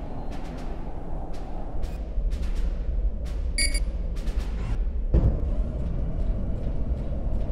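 A huge swarm of small creatures skitters and rumbles in a dense, low roar.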